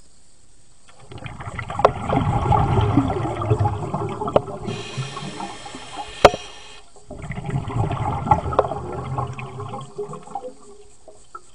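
Air bubbles gurgle and rumble loudly underwater in bursts.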